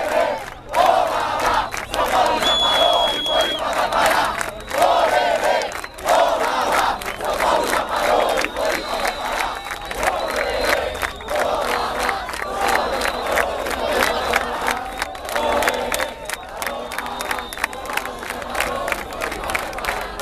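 Many people clap their hands in rhythm.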